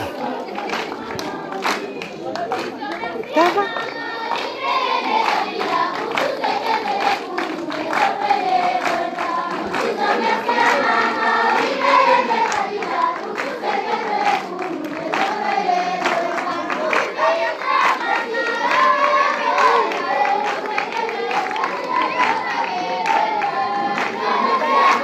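A large crowd of children chatters and cheers loudly outdoors.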